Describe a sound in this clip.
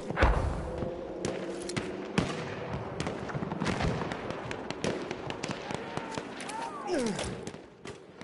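A mounted machine gun fires.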